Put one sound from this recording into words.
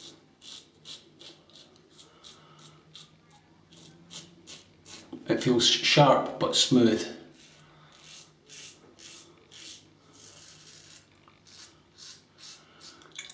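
A razor scrapes through stubble in short strokes.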